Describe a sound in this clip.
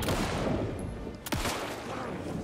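A handgun fires a single loud shot.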